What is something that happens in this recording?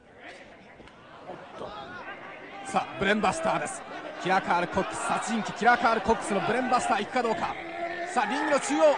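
A large crowd cheers and shouts in a big echoing hall, growing louder.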